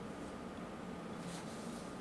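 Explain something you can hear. Sheets of paper rustle.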